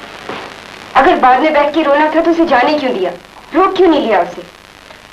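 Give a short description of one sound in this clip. A woman speaks firmly nearby.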